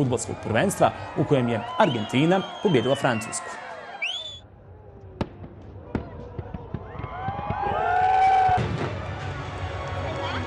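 Fireworks burst and crackle overhead.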